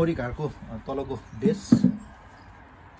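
A wooden tray knocks down onto a wooden frame.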